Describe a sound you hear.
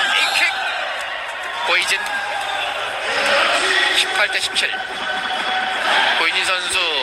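A large crowd cheers loudly in an echoing hall.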